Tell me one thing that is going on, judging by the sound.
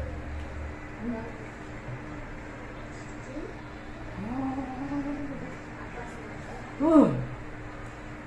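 A young woman hums and speaks softly close by.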